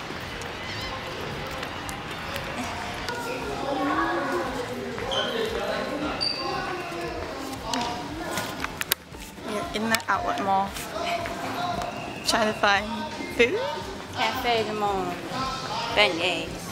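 A middle-aged woman talks close to the microphone.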